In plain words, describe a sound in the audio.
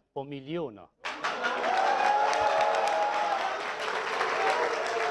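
A large audience claps and cheers.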